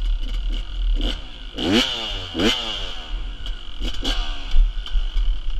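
A dirt bike engine revs up sharply nearby, rising and falling.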